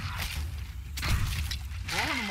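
A gunshot bangs sharply.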